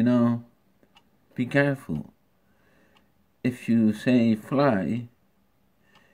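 A middle-aged man speaks calmly and close to a microphone, in short bursts.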